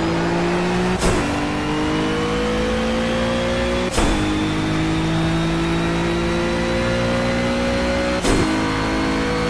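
A racing car engine briefly cuts out with a sharp pop at each gear change.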